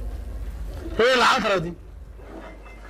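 A man exclaims briefly into a microphone, close up.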